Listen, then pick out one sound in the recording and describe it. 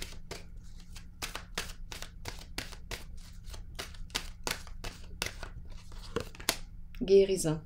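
Playing cards riffle and flick rapidly as a deck is shuffled.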